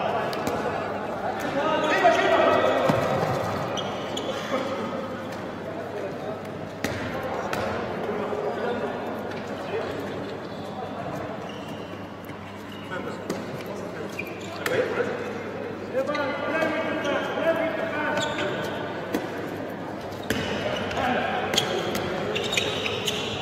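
A ball bounces on a hard court in a large echoing hall.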